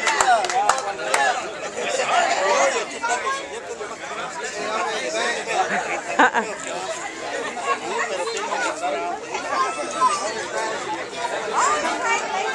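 A crowd of men and women chatter and talk outdoors nearby.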